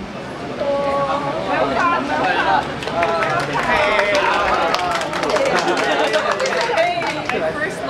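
Hands clap in a group.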